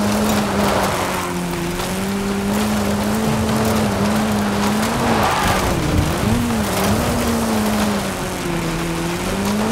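A car engine drones steadily, its pitch rising and falling with the revs.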